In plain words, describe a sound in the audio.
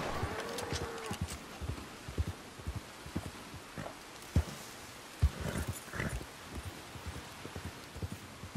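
A horse's hooves thud on soft ground at a gallop.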